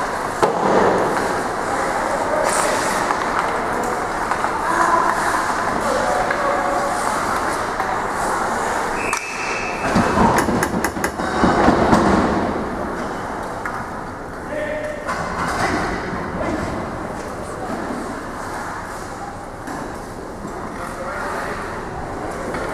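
A crowd murmurs and calls out in a large echoing arena.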